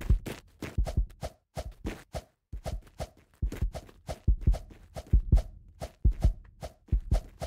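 Quick footsteps thud steadily on a hard floor.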